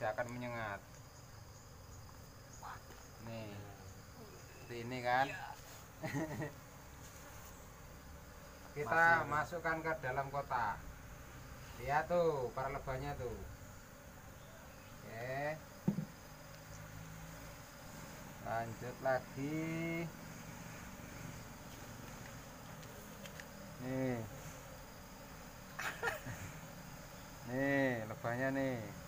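Bees buzz steadily.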